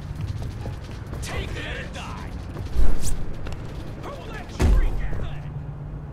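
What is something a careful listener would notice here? Boots run on a concrete rooftop.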